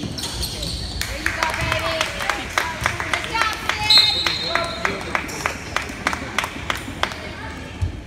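A basketball bounces rhythmically on a wooden floor in an echoing gym.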